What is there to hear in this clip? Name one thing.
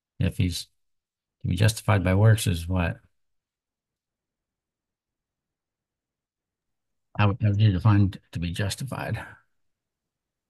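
A middle-aged man speaks calmly over an online call, in short bursts with pauses.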